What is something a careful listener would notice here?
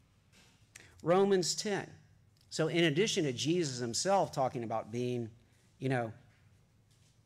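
A man speaks calmly into a microphone, reading out in short phrases.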